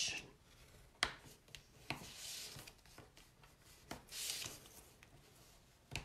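A bone folder scrapes lightly across paper.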